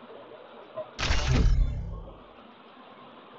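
A short electronic game sound effect swells with a deep whoosh.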